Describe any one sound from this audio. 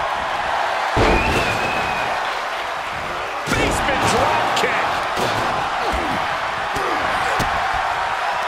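Heavy thuds of bodies hitting a mat ring out.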